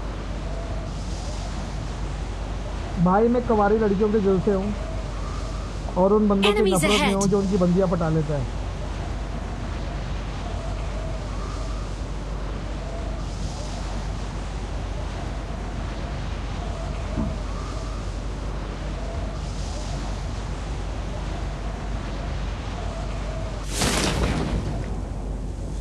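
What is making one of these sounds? Wind rushes steadily past a skydiver in freefall.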